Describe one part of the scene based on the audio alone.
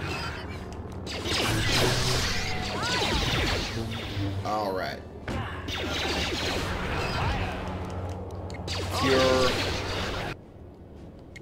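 Lightsabers hum and swing with buzzing whooshes.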